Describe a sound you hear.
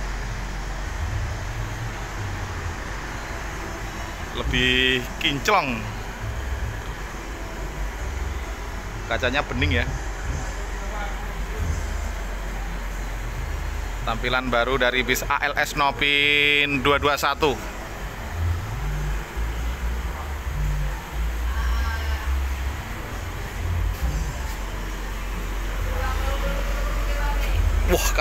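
A large bus engine idles with a low, steady rumble nearby.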